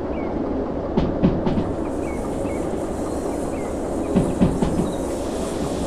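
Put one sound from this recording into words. Train wheels clatter over rail joints in quick groups of knocks.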